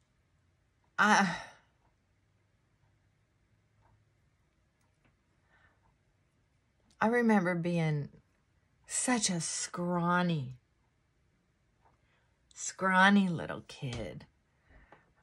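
A middle-aged woman talks calmly and close by, in short bursts.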